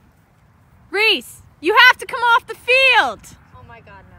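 A girl shouts loudly outdoors across a field.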